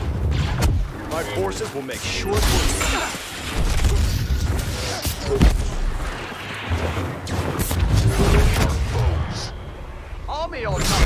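Lightsabers clash with sharp crackling strikes.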